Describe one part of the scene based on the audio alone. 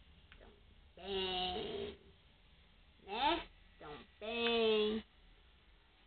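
A cat meows loudly several times, close by.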